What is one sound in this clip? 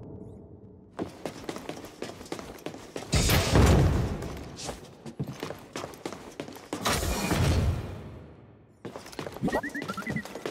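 Footsteps clatter quickly on a metal floor.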